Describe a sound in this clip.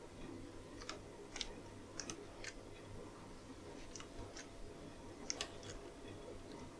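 A plastic control clicks softly under a hand, several times.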